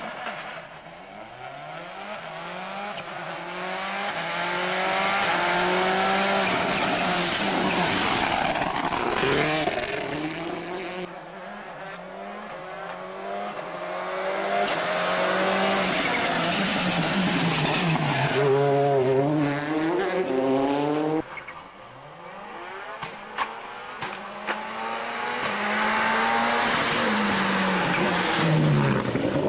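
A rally car engine revs hard, rising in pitch with each gear change as the car races closer and passes.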